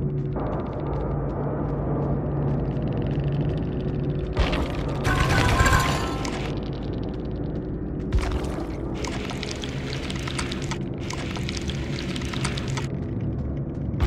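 Heavy footsteps tread slowly over grass.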